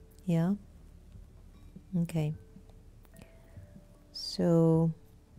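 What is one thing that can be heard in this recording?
A middle-aged woman speaks calmly into a close microphone in short, drawn-out phrases.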